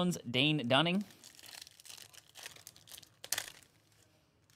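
A foil card pack crinkles as it is torn open.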